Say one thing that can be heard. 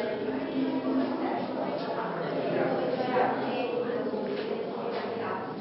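Several adults talk quietly, echoing in a large hall.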